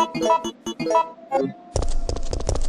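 Menu selection beeps chime quickly.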